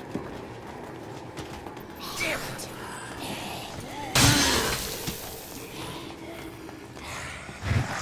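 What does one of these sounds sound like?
Quick footsteps run across a hard floor.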